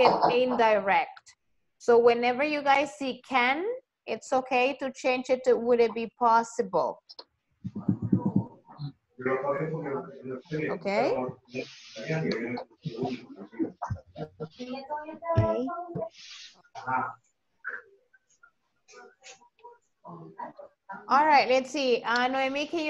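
A woman speaks calmly and clearly through an online call.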